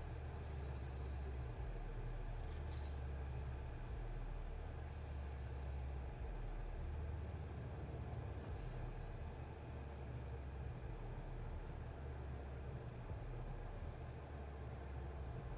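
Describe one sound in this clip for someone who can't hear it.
A deep, dark drone rumbles steadily.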